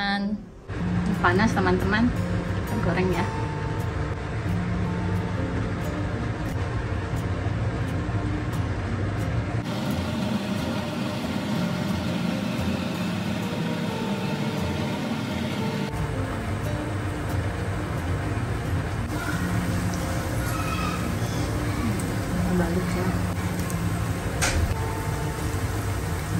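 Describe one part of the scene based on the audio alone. Hot oil sizzles as food is laid into a pan.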